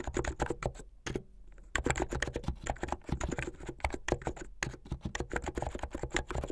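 Fingernails tap quickly on the keys of a mechanical keyboard, clacking close up.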